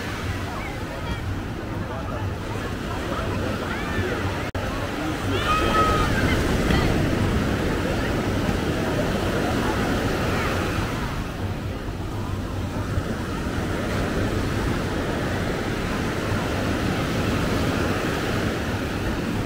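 Wind blows across the microphone.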